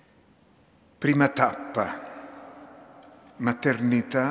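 A woman speaks into a microphone at a lectern, her voice echoing in a large hall.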